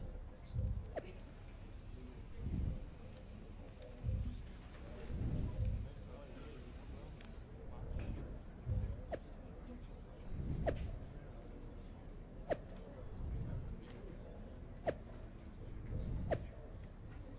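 Short soft clicks sound now and then.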